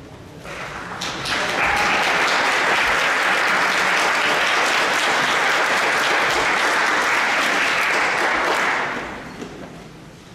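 An audience applauds loudly in a large echoing hall, then the clapping fades away.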